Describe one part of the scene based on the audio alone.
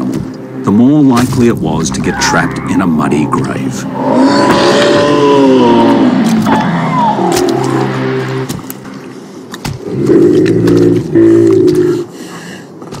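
Large animals grunt and moan low and close by.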